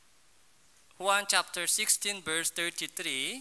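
A young man speaks clearly and loudly through a microphone.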